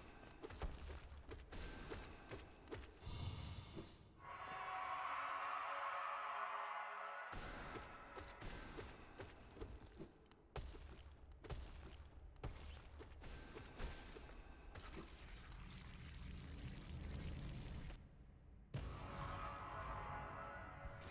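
Sword slashes and hits ring out in a fast fight.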